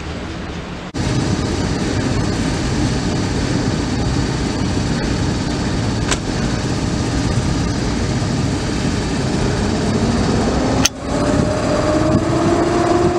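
An electric locomotive rumbles slowly toward the listener, its motors whining as they rise in pitch.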